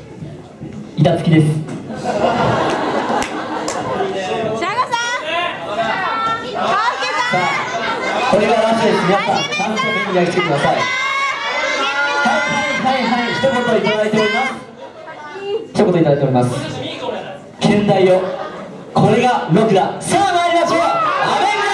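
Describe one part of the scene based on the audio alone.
A young man sings into a microphone over loudspeakers in a large hall.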